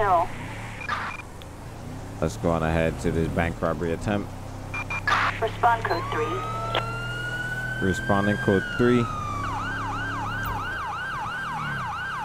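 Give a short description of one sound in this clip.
A police car engine hums steadily as it drives.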